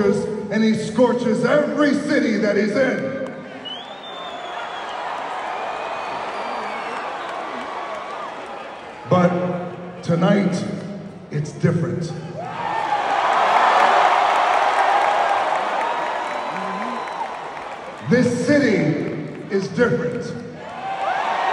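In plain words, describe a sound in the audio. A man speaks loudly and forcefully into a microphone over loudspeakers in a large echoing arena.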